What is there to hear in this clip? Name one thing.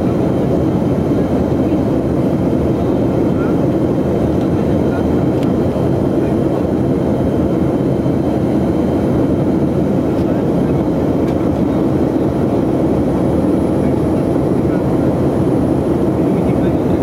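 A jet aircraft's engines roar steadily in the cabin.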